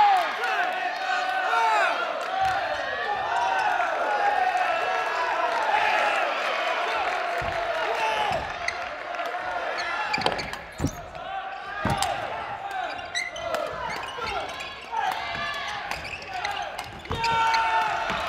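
A crowd of people chatters and calls out in a large echoing hall.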